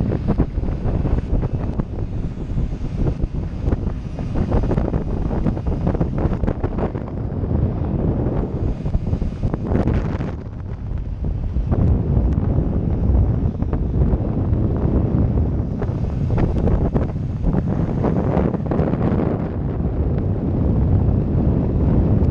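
Wind buffets loudly against the rider.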